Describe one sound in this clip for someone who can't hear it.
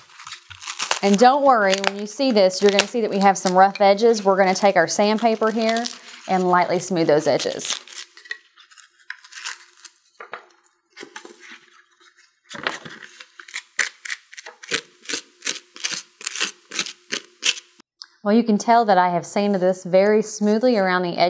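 A woman talks calmly and clearly into a close microphone.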